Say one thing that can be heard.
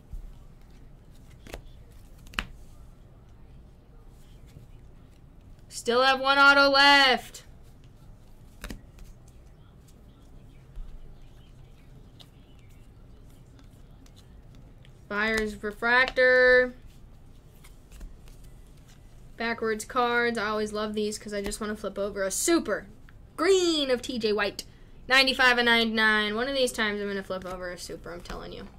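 Trading cards rustle and slide softly between hands.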